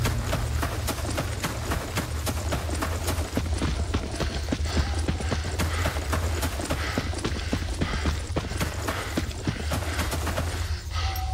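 Footsteps crunch quickly through dry grass.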